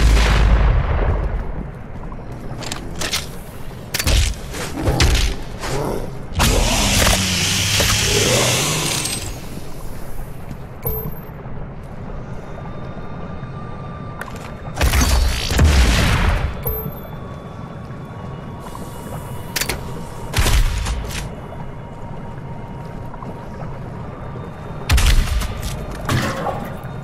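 Heavy gunshots boom in quick bursts.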